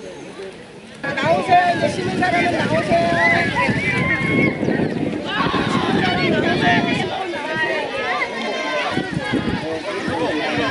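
Many children chatter and call out loudly outdoors.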